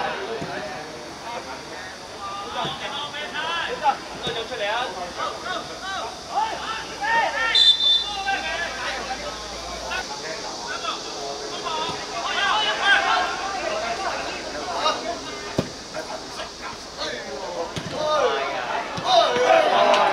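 Young men shout and call to each other across an outdoor pitch.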